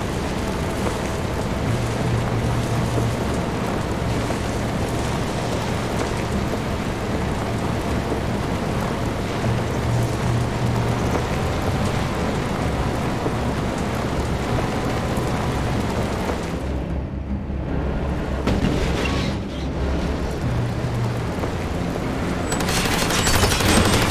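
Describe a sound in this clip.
A vehicle engine rumbles steadily while driving over rough ground.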